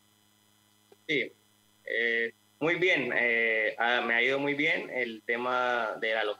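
An adult man speaks calmly over an online call.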